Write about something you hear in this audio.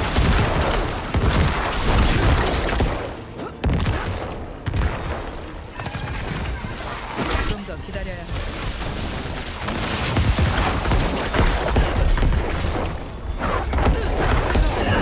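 Fighting in a video game crashes and thuds with loud wet bursts.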